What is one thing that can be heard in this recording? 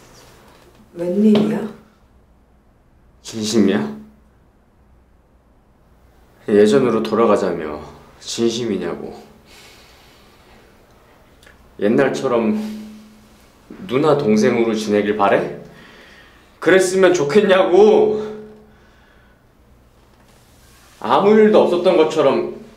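A young man speaks softly nearby.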